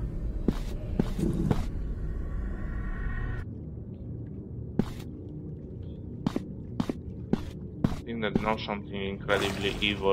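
Footsteps crunch slowly on rocky ground.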